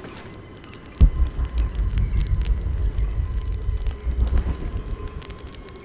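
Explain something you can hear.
Footsteps crunch quickly over dry ground and leaves.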